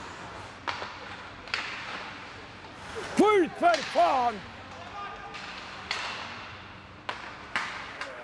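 Hockey sticks clack against a puck on ice.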